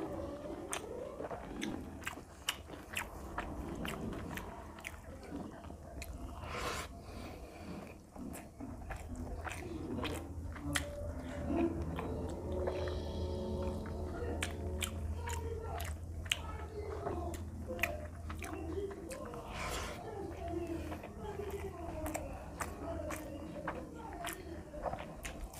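Fingers squish and mix soft rice close up.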